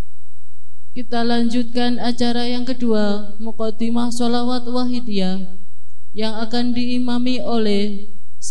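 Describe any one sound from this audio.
A young woman chants a long melodic recitation into a microphone, close and clear.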